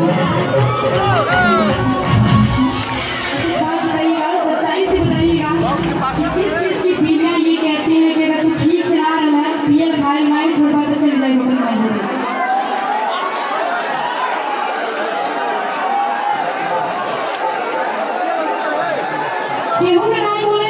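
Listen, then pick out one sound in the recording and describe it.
A large crowd outdoors chants and cheers loudly.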